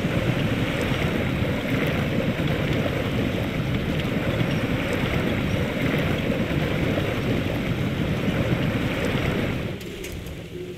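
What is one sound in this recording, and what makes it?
Tyres churn through mud and splash.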